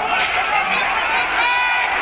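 Several men shout excitedly outdoors.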